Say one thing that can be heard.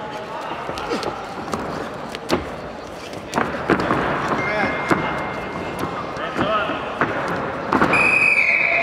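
Wrestlers' feet thud and slap on a mat.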